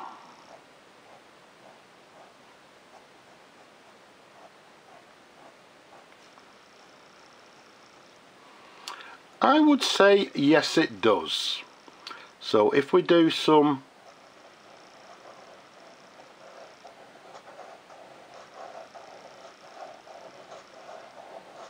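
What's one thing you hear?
A fountain pen nib scratches softly across paper.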